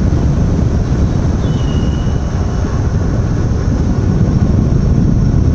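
Wind rumbles loudly and steadily across the microphone outdoors.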